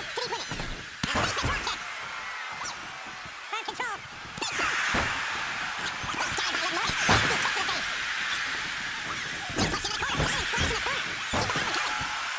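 Bodies slam hard onto a wrestling mat with heavy thuds.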